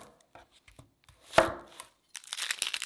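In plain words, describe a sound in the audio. A knife cuts through an onion with a crunch.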